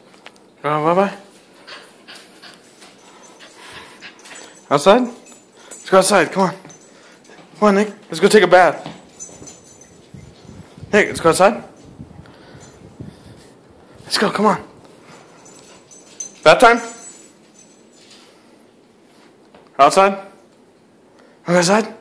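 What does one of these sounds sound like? A small dog lets out short howling yelps.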